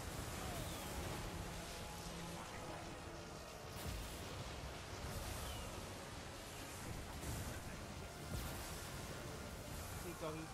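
Magic bolts crackle and zap repeatedly.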